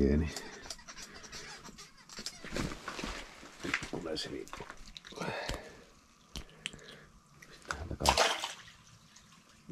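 Clothing rustles as a person shifts about.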